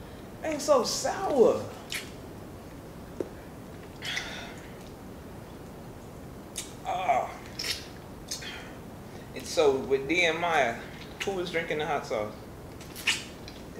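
A woman sucks and chews on a lime wedge, close to a microphone.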